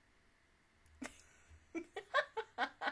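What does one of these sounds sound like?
A young woman laughs close to a microphone.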